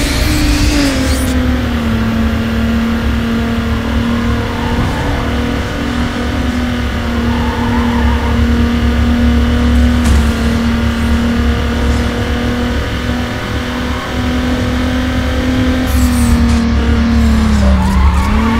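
A car engine roars at high revs, dipping briefly with each gear change.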